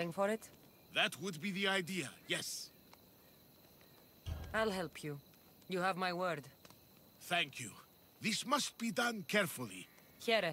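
A man answers in a low, calm voice.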